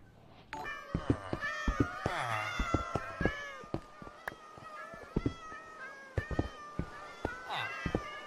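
A pickaxe taps at wooden blocks.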